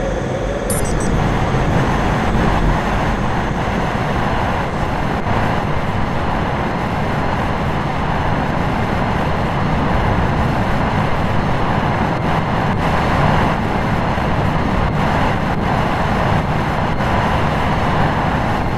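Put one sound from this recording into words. A handheld drill grinds steadily through rock.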